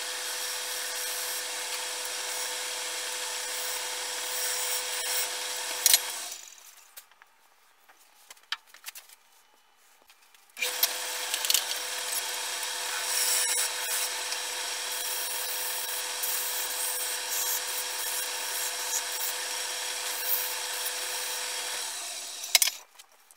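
A chisel scrapes and shaves spinning wood.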